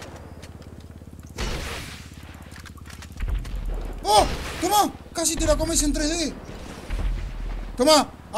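A rocket launcher fires with a loud whoosh and a deep boom.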